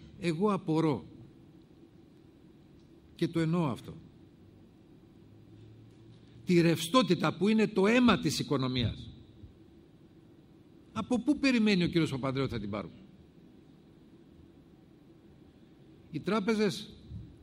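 A middle-aged man speaks firmly into a microphone, in short bursts with pauses.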